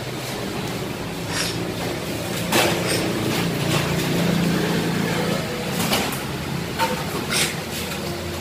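A metal ladder clanks and rattles as it is moved and set down.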